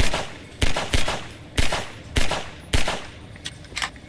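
A pistol fires several loud shots in quick succession.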